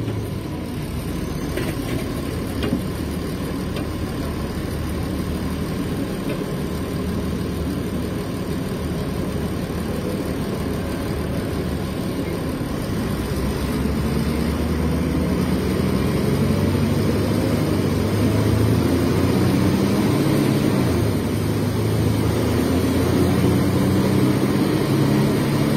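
A bus engine rumbles loudly and its pitch rises as it gathers speed.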